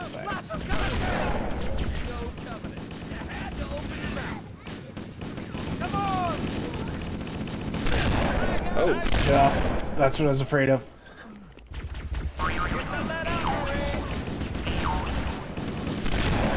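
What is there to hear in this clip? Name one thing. Gunfire from a video game rattles in short bursts.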